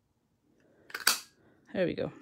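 A paper punch clicks shut.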